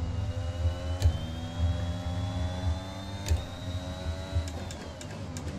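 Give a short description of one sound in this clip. A racing car engine shifts gears with sharp clicks.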